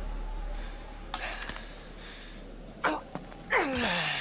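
A young man pants heavily.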